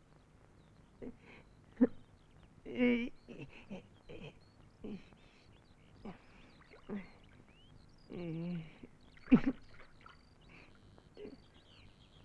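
A young man laughs and murmurs softly nearby.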